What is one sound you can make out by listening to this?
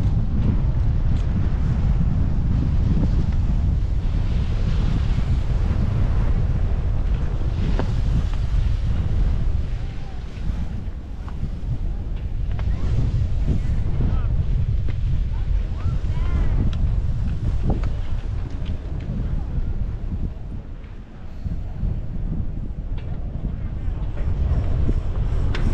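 Wind blows steadily against the microphone outdoors.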